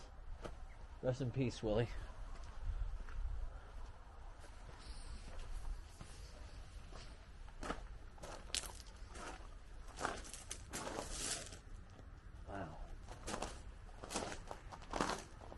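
A middle-aged man talks calmly close to the microphone.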